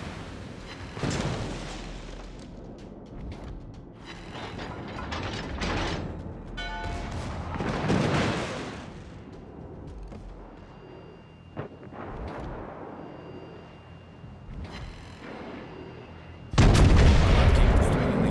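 Big naval guns fire with deep booming blasts.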